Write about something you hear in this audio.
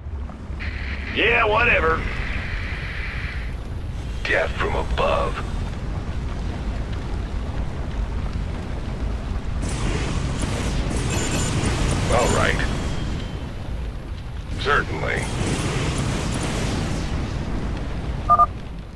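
Machines rumble and clank in a steady low drone.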